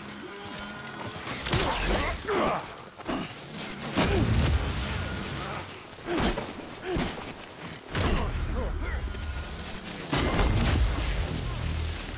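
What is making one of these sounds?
Guns fire in sharp, loud shots with deep booms.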